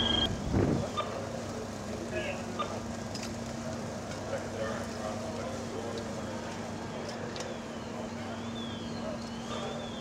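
Water sprays from a hose with a steady hiss.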